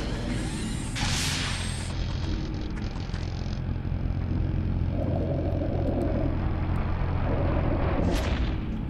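A machine hums with a deep, steady drone.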